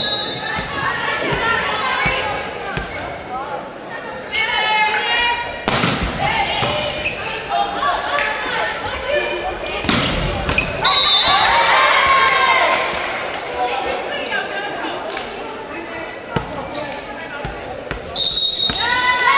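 Young women shout and call out in a large echoing gym.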